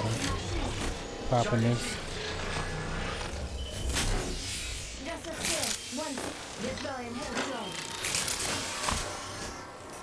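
Game sound effects clatter and whoosh.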